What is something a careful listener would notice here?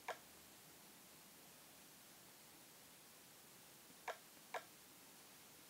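Short, bright menu blips sound a few times.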